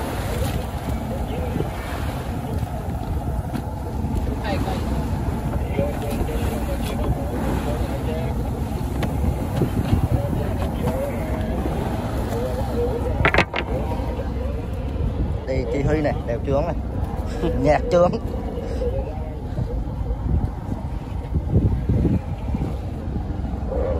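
Water splashes and rushes against the side of a moving boat.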